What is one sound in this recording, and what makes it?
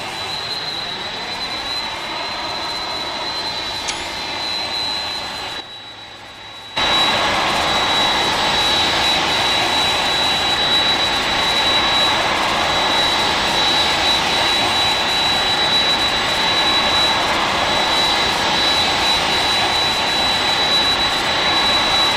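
Jet engines hum and whine steadily as a large airliner taxis.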